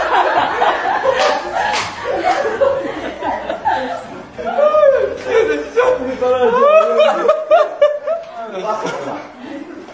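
A young man laughs loudly and heartily.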